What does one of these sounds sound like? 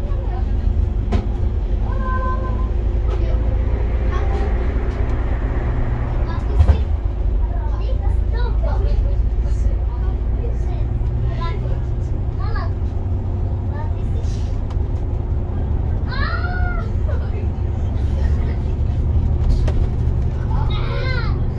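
Tyres roar on a motorway at speed.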